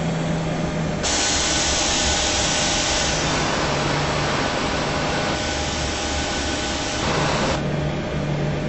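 Jet engines roar loudly and close by outside an airliner.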